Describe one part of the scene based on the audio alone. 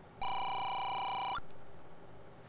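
A video game's text beeps with a steady electronic tone.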